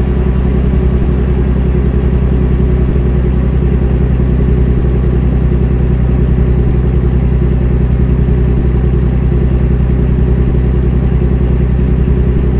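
A truck engine rumbles steadily at a low pitch.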